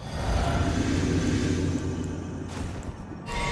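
A magical spell hums and shimmers.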